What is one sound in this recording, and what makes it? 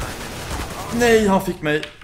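Gunshots crack in a game.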